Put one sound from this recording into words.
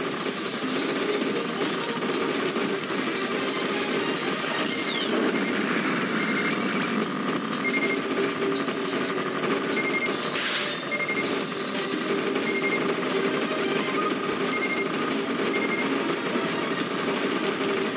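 Upbeat electronic game music plays steadily.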